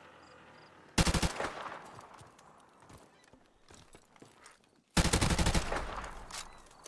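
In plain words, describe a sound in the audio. A rifle fires loud, rapid bursts close by.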